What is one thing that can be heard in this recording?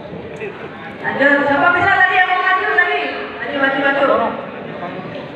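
A woman speaks with animation through a microphone and loudspeakers in a large echoing hall.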